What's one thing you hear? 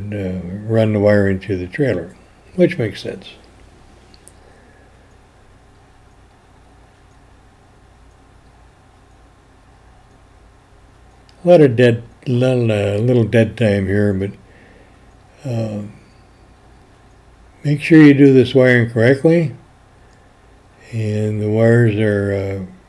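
A man talks calmly, close by, in short bursts with pauses.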